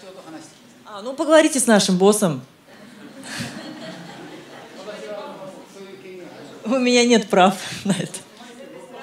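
A young woman laughs loudly through a microphone.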